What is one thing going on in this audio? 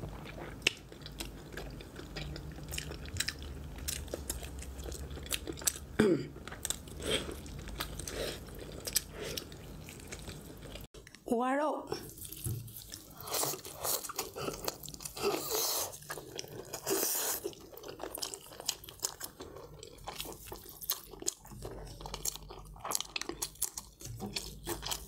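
A young woman slurps and smacks her lips close to a microphone.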